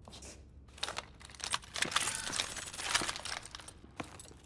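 A rifle clicks and clatters as it is handled.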